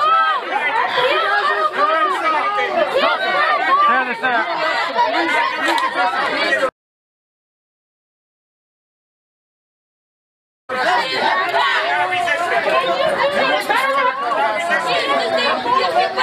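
A crowd of people shouts loudly and angrily nearby.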